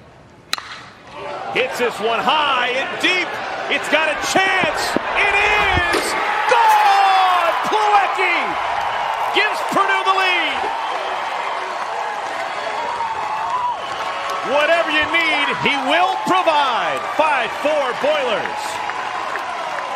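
A crowd cheers and shouts in a ballpark.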